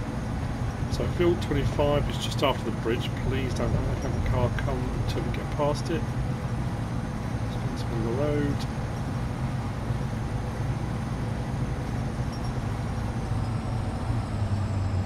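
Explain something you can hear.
A heavy truck engine rumbles steadily while driving.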